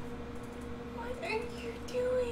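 A young woman talks casually close to a microphone.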